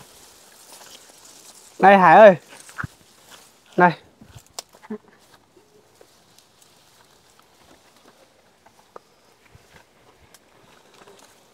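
Leafy plants rustle and snap as they are pulled.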